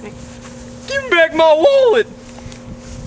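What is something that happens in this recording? A young man shouts loudly and excitedly nearby.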